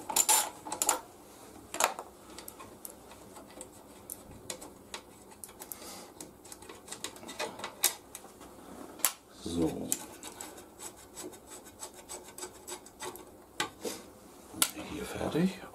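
Metal parts clink and tap softly.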